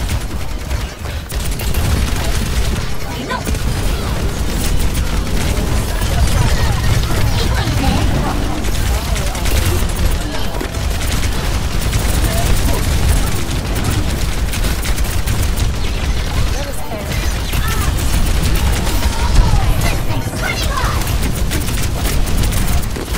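Game weapons fire rapidly with crackling blasts and booms.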